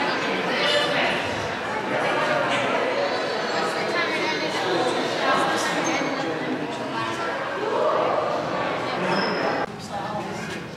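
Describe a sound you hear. A crowd of visitors murmurs and chatters in a large echoing hall.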